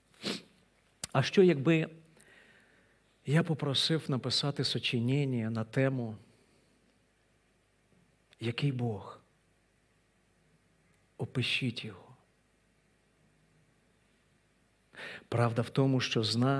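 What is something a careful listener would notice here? A middle-aged man speaks with feeling through a microphone, pausing often.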